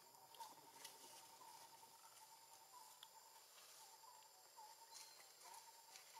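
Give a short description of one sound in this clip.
A baby monkey squeaks softly, again and again.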